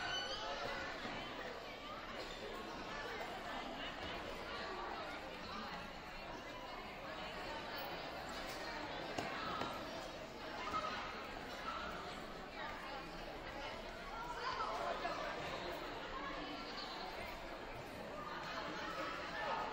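A crowd of adults and children chatters in a large echoing hall.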